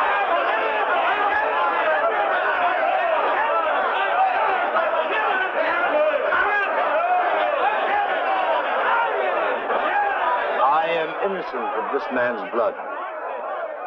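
A large crowd shouts and clamours.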